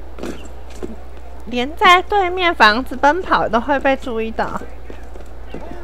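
Footsteps patter quickly on roof tiles.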